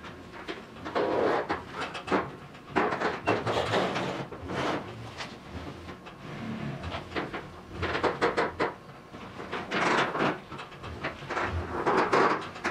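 A truck engine rumbles as a vehicle backs a trailer in.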